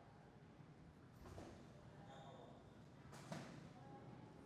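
Boxing gloves thud against each other in sparring.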